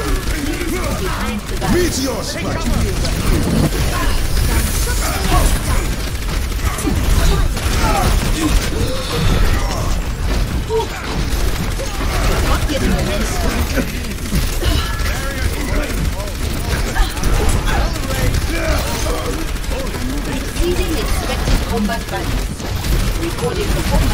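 Explosions and impacts thud in a game battle.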